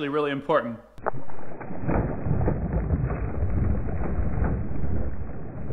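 A cast net splashes down into shallow water.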